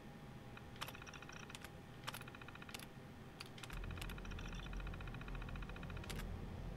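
A computer terminal chirps in rapid electronic ticks as text prints out.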